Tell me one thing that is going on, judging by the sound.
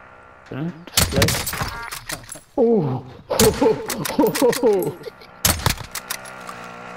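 A bolt-action sniper rifle fires sharp, booming shots.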